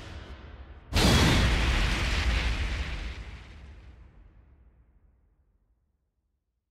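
A heavy boom rumbles and fades.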